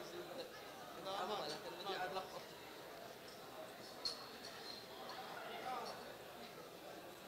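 Many men talk and greet one another in a large echoing hall.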